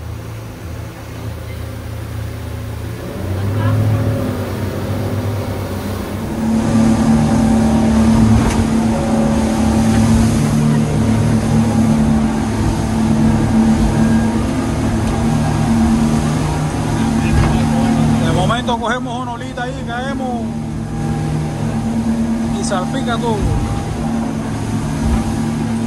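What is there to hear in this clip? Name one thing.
Waves crash and rush past a boat's hull.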